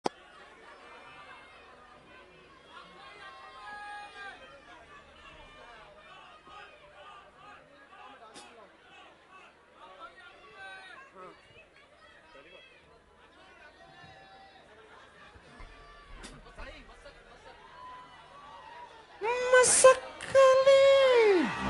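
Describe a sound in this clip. A large crowd of people chatters and murmurs in a big echoing hall.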